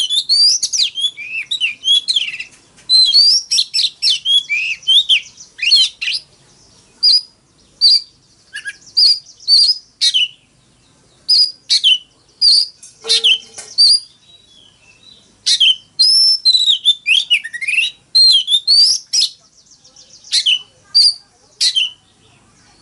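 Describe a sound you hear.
A songbird sings loud, sweet whistling phrases up close.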